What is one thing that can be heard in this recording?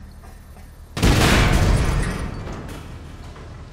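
An explosion booms and its rumble slowly fades.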